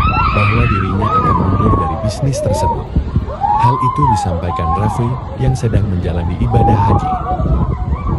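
Men talk and shout excitedly nearby.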